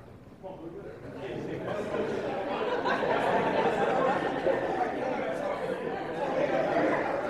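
A group of young people sing together in a large echoing hall.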